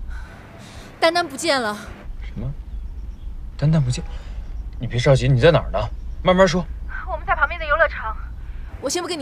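A young man speaks on a phone.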